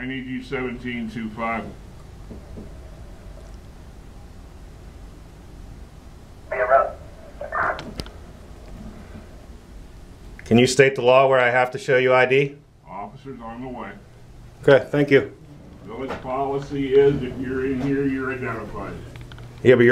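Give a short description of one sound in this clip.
An elderly man talks nearby, with animation.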